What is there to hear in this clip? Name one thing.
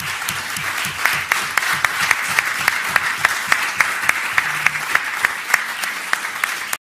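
A man claps his hands close by.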